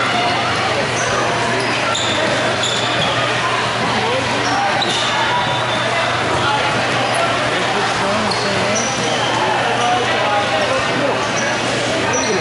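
Shoes squeak sharply on a hard floor.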